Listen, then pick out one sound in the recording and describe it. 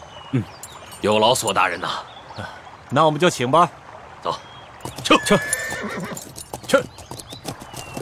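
A man speaks cheerfully and with animation nearby.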